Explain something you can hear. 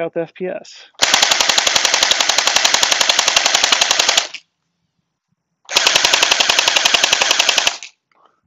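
A toy rifle fires in rapid bursts, a fast clatter of shots.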